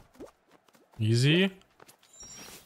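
A man exclaims briefly into a close microphone.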